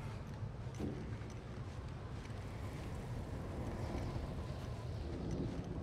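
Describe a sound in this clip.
Footsteps crunch through deep snow.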